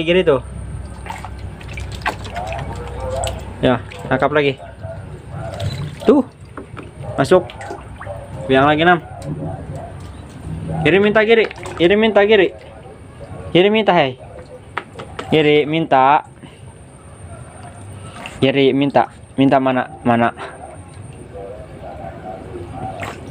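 Water splashes and sloshes in a small tub.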